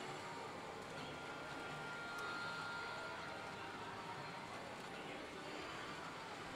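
Slot machines chime and jingle with a steady electronic din.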